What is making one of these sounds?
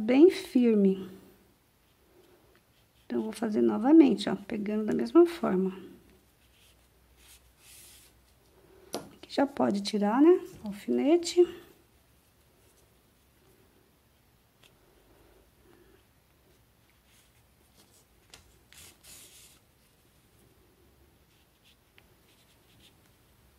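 Yarn rustles softly as a needle pulls it through crochet.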